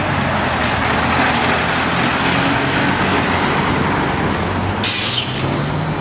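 A truck drives past with a rumbling engine.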